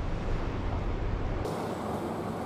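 Traffic rumbles in a city street.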